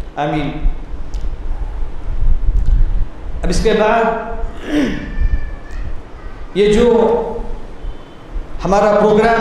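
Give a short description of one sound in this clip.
A man reads out in a chanting voice through a microphone, in an echoing room.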